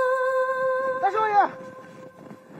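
A man shouts out loudly in the open.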